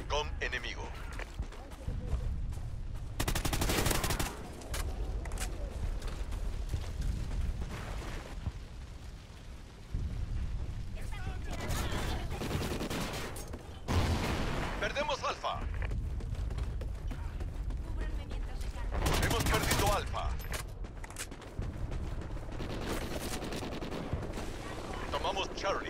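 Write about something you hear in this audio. Footsteps run quickly over hard ground and gravel.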